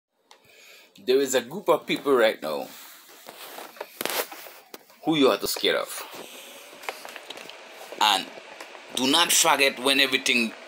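A man talks calmly and close up, with pauses.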